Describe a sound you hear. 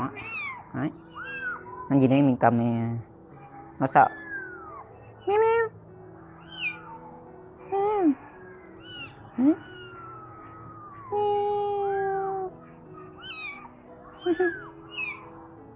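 A kitten meows loudly and repeatedly, close by.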